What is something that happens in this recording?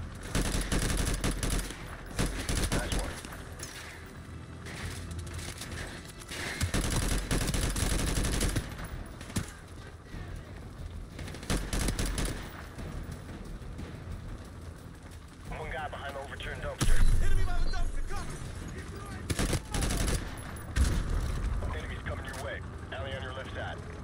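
A rifle magazine clicks and snaps as a gun is reloaded.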